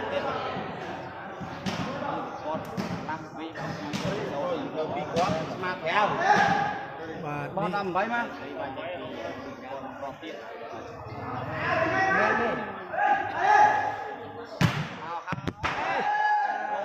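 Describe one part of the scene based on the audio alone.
A crowd of spectators chatters and shouts in a large echoing hall.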